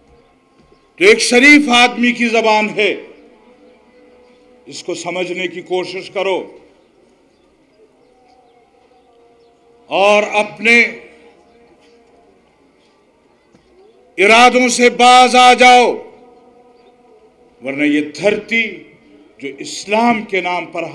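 An elderly man speaks forcefully through a microphone and loudspeakers, in bursts with pauses.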